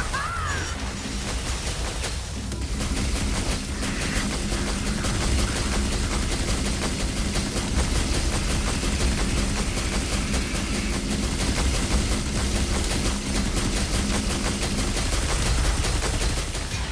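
Blades slash and strike rapidly.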